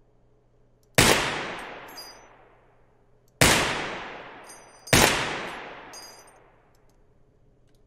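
A pistol fires loud single shots that echo away over open air.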